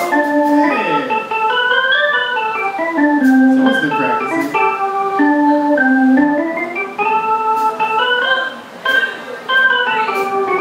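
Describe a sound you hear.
A live band plays music through loudspeakers.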